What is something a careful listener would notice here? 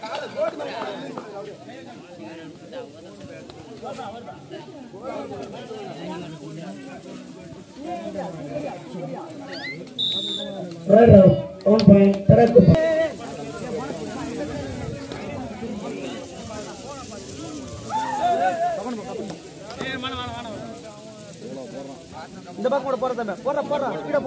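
A crowd of spectators chatters and calls out outdoors.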